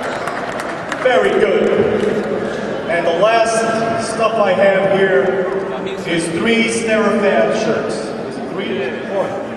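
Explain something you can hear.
A man speaks with animation into a microphone, heard over loudspeakers.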